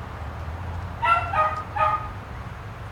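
A dog barks a few times nearby.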